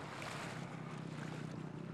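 A whale blows out a whooshing breath.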